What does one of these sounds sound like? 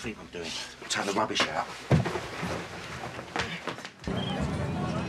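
Footsteps thud on a wooden floor as a man hurries out.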